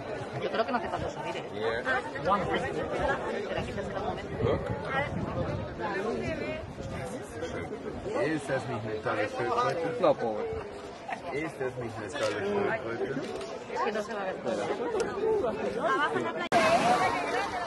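A crowd of men and women talk and chatter close by.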